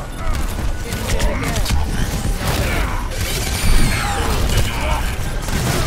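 A video game gun fires rapid energy shots.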